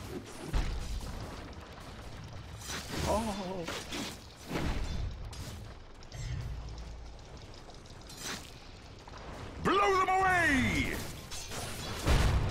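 Swords clash and spells crackle in a game battle.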